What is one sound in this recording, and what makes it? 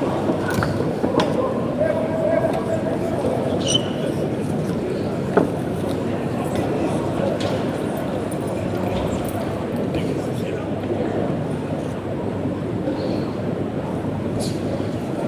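A crowd murmurs and shouts throughout in a large echoing hall.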